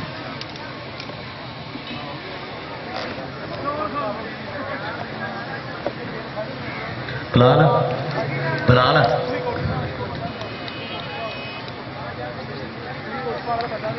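A large outdoor crowd murmurs and chatters throughout.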